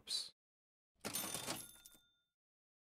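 A short electronic chime sounds as game items shuffle.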